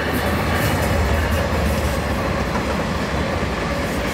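Diesel locomotive engines rumble loudly as they pass close by.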